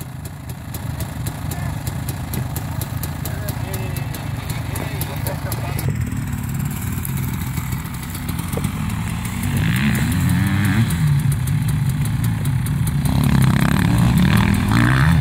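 A dirt bike engine idles and rumbles nearby.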